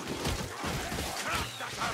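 Blades clash and thud in a close fight.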